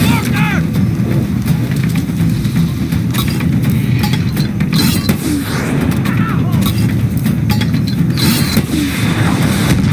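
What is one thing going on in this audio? A mortar fires with a heavy thump.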